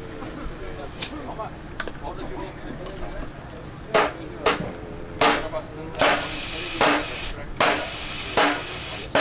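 Compressed air hisses in short bursts as a tyre is inflated.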